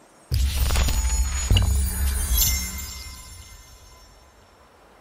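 A bright game notification chime rings out and slowly fades.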